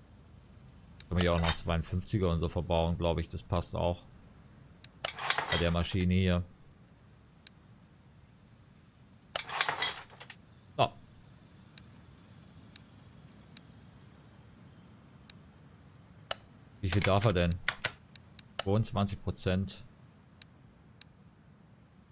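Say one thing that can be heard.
Short, sharp interface clicks tick now and then.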